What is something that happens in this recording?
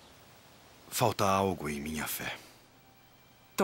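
A young man speaks with animation up close.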